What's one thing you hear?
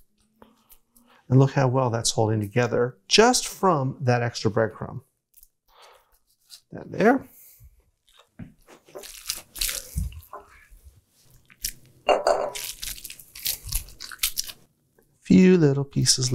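Hands pat and shape a soft patty of food.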